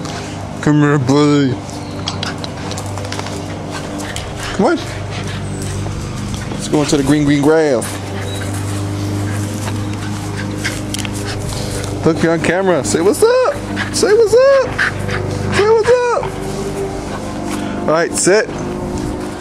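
A small dog yelps and whines excitedly close by.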